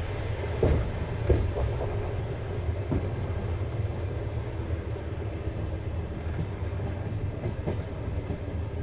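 Train wheels knock and clatter over rail joints.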